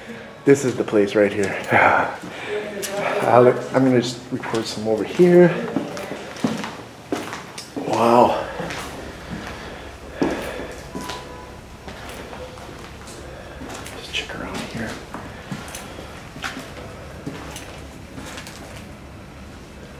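Footsteps crunch on a floor strewn with debris.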